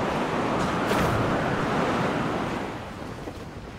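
Wind rushes past while gliding through the air.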